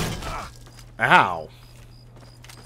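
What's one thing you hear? A man shouts aggressively.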